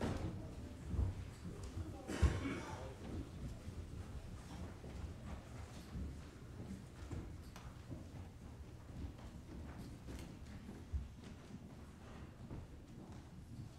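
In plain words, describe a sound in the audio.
Children's footsteps patter across the floor.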